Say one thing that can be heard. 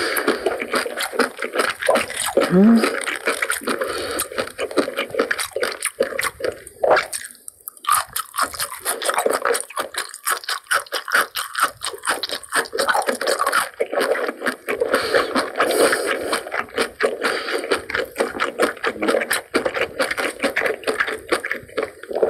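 A young woman chews food loudly and wetly close to a microphone.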